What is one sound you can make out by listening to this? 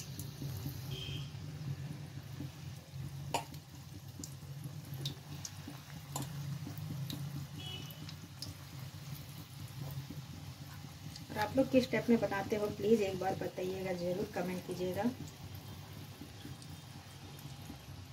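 Pakoras sizzle and bubble in hot oil in an iron wok.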